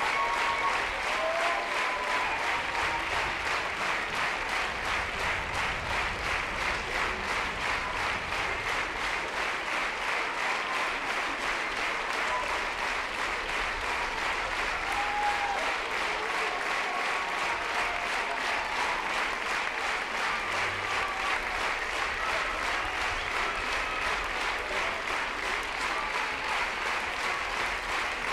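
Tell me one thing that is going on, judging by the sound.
An audience applauds loudly and steadily in a large hall.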